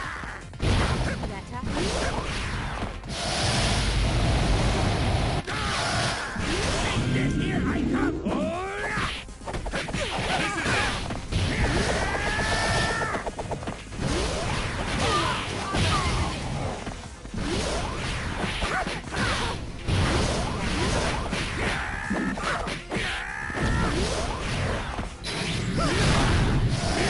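Punches and kicks land with sharp smacks.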